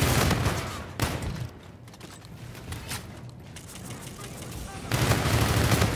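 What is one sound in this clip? Rapid gunfire bursts loudly from an automatic rifle.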